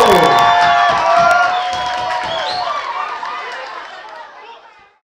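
A crowd cheers and whoops loudly, then fades.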